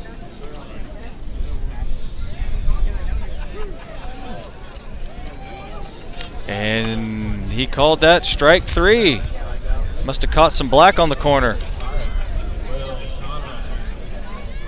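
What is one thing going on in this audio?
A crowd murmurs and calls out outdoors.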